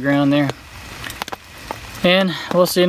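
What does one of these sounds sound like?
A wood fire crackles and pops.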